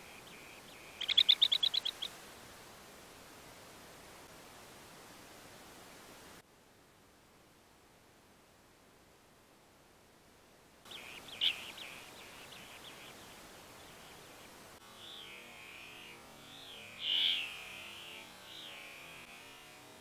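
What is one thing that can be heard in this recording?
Small birds call with short, rapid trills.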